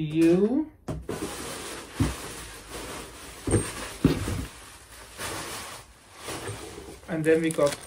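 Paper and plastic wrapping rustle and crinkle.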